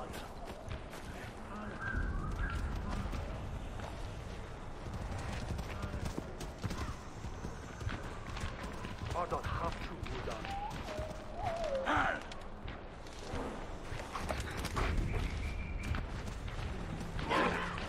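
Footsteps crunch softly on grass and leaves.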